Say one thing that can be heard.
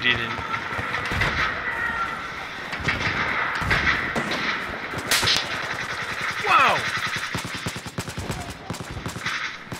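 Machine gun fire rattles in rapid bursts.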